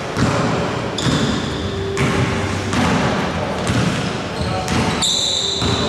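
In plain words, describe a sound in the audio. Sneakers squeak sharply on a floor in an echoing hall.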